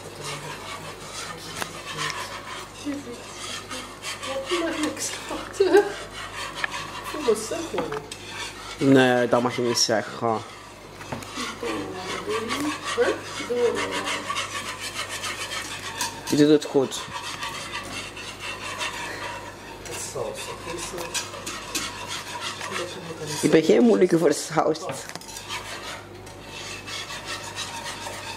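Utensils clink and scrape against a pan.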